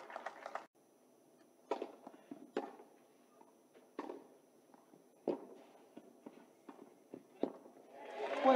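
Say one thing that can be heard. A tennis ball is struck back and forth with sharp pops.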